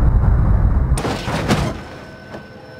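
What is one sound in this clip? Metal crunches and shatters in a second sharp crash.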